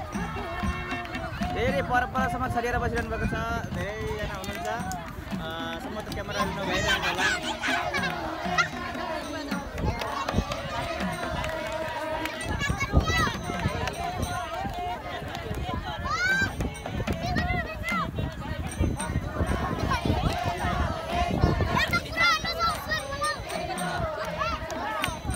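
A hand drum beats a steady rhythm.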